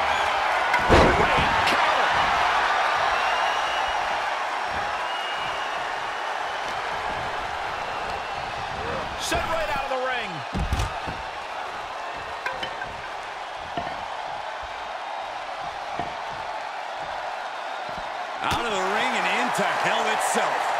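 A crowd cheers loudly throughout.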